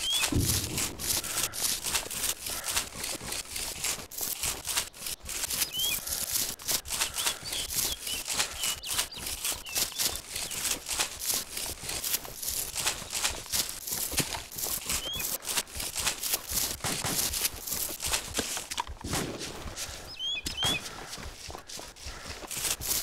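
Footsteps rustle steadily through dry grass and undergrowth.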